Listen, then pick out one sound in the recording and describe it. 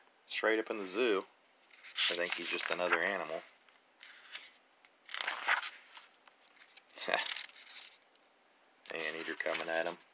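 A paper page turns with a soft rustle.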